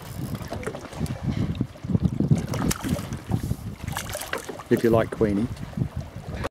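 Water laps against the side of a boat.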